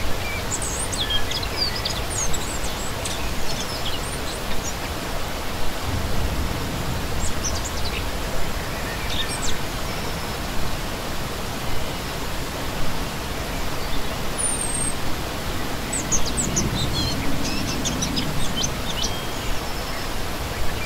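A shallow stream rushes and gurgles over rocks close by.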